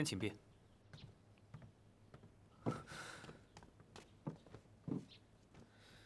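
Footsteps thud on a wooden floor indoors.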